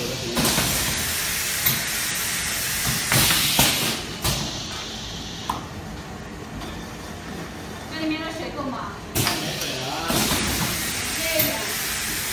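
A filling machine hisses and clatters steadily.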